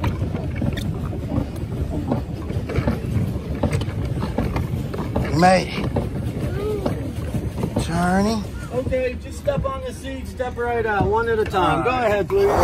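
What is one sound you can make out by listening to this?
Water laps gently against the boats.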